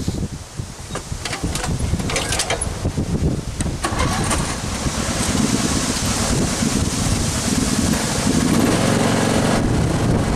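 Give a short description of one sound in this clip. A riding mower's engine rumbles close by, growing louder.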